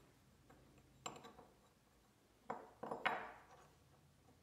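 A metal piece scrapes and knocks on a wooden bench.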